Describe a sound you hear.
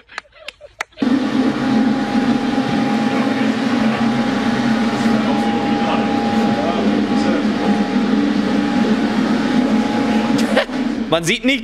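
A car engine idles with a steady rumble.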